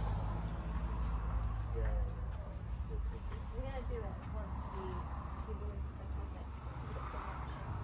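Women talk quietly at a distance.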